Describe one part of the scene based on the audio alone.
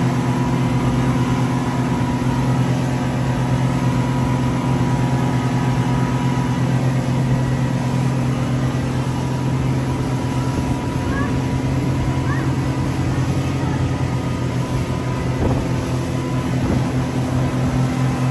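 Water rushes and churns in a boat's wake.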